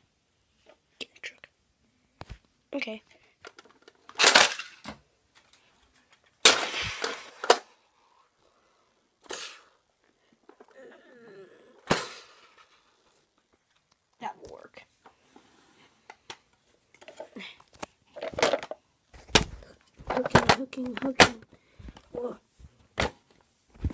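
Plastic toy trucks knock and clatter against each other on a carpet.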